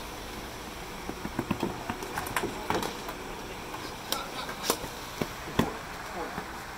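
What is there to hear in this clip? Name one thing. Hockey sticks clack and tap a ball on a hard court outdoors.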